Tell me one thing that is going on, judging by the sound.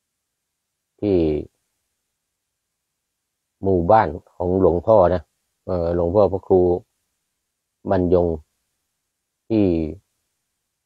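An elderly man speaks calmly and slowly, close by, in short phrases with pauses.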